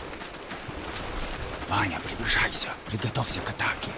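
Footsteps crunch on a dirt path as soldiers run.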